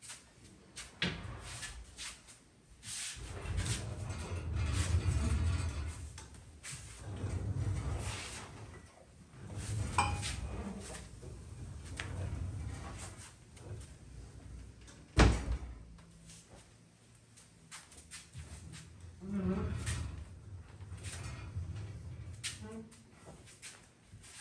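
Metal drawers roll open and bang shut.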